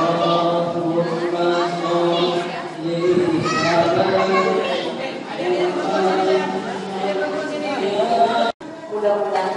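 A young woman talks playfully to children up close.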